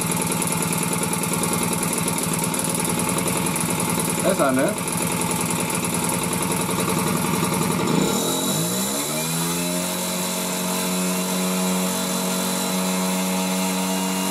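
A small motorbike engine runs steadily close by, then settles to a lower, smoother idle.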